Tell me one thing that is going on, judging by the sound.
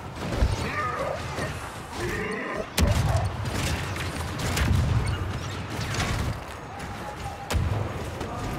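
Laser blasters fire in sharp bursts.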